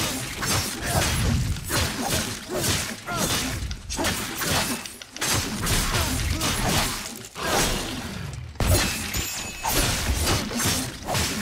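Sword blows slash and thud rapidly against a monster's body.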